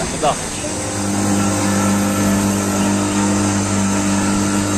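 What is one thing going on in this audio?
An outboard motor drones steadily.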